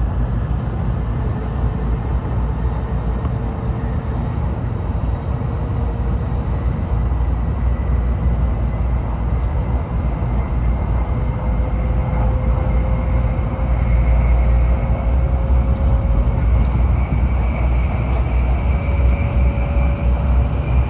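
A faint whine rises slowly in pitch as the train gathers speed.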